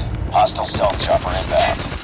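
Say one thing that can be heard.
A shotgun is reloaded with metallic clicks.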